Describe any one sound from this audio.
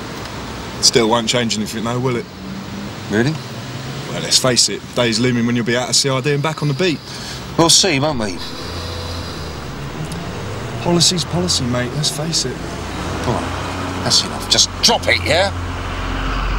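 A younger man speaks in reply nearby.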